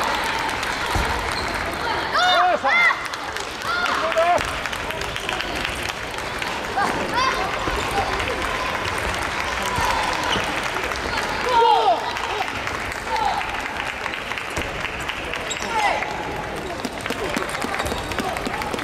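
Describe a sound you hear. A table tennis ball clicks back and forth across a table in a large echoing hall.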